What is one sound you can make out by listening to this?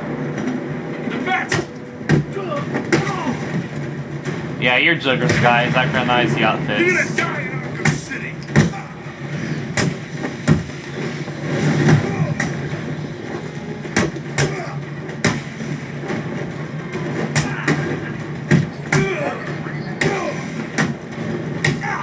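Sharp blows and thuds land again and again.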